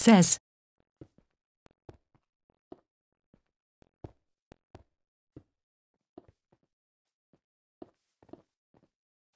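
Soft footsteps patter on grass.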